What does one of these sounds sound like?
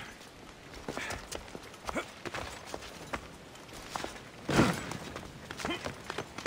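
Footsteps and hands thud and scrape on stone during climbing.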